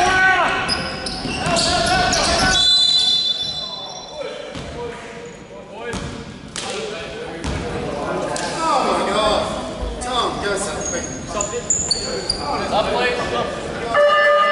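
Basketball shoes squeak sharply on a wooden floor in a large echoing hall.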